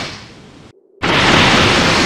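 A large energy explosion bursts with a loud roar.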